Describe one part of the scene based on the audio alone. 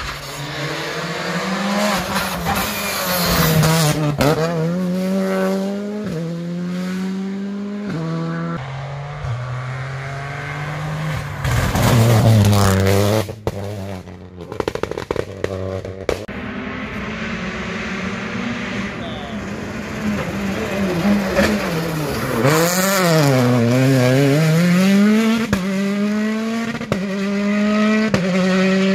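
A rally car engine roars loudly, revving high and shifting gears as it speeds past.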